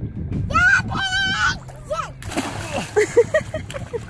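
A girl jumps into the water with a splash.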